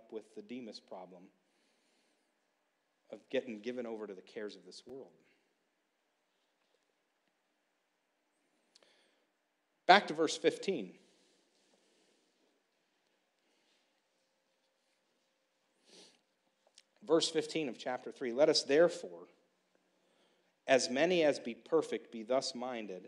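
A man speaks into a microphone in a slow, measured way, with long pauses.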